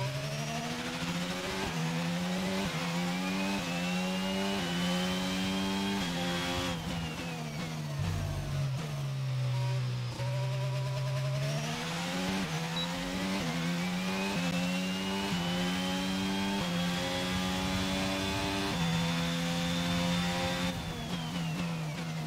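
A racing car engine revs high, climbing through the gears, then drops as the car brakes and climbs again.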